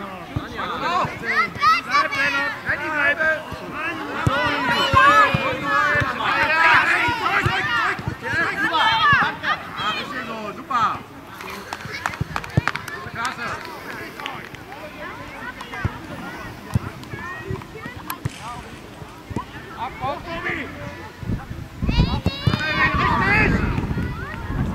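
Children shout and cheer excitedly outdoors.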